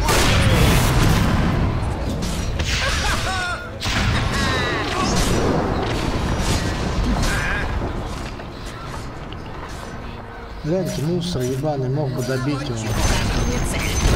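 Spell effects crackle and burst in a game battle.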